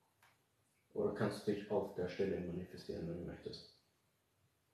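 A young man speaks briefly and calmly nearby.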